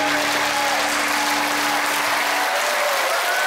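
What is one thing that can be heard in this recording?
A band's last chord rings out and stops.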